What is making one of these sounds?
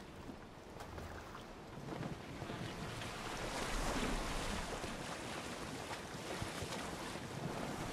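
Water swishes against a rowing boat's hull as it moves.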